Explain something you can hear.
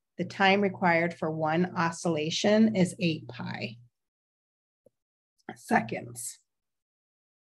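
A young woman explains calmly into a microphone, as on an online call.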